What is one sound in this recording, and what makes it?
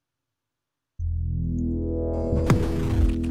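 Electronic game music starts up loudly.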